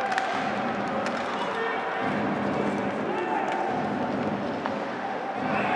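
A hockey stick slaps a puck.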